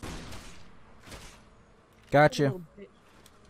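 A gunshot cracks in a narrow echoing passage.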